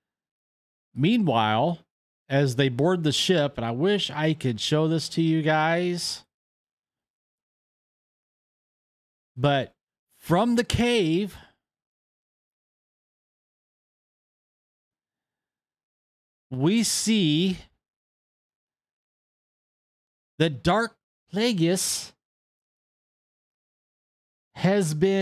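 A middle-aged man talks with animation into a close microphone, in bursts with pauses.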